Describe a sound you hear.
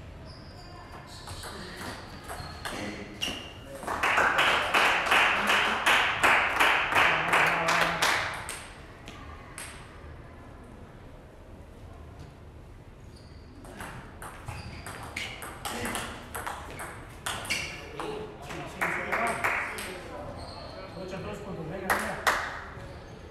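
A table tennis ball clicks rapidly back and forth on paddles and a table in a large echoing hall.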